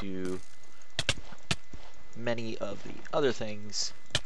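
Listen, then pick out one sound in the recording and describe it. A sword strikes with sharp hits.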